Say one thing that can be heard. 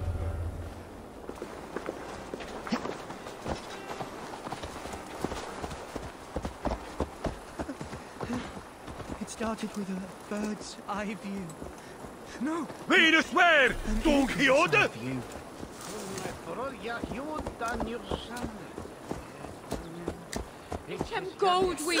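Horse hooves clop on a dirt path.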